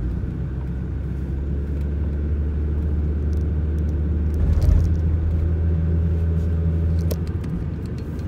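Tyres roll over a paved road with a low rumble.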